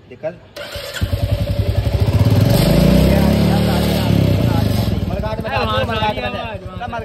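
A motorcycle engine starts and idles with a steady, rapid thumping.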